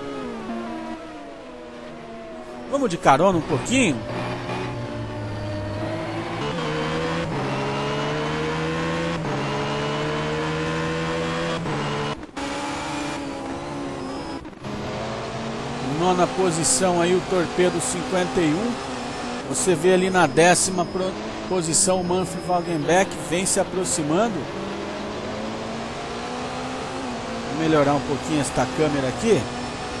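A racing car engine roars at high revs, rising and dropping as it shifts gears.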